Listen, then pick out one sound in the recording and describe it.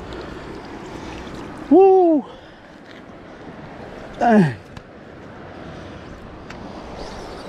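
A shallow creek trickles gently nearby.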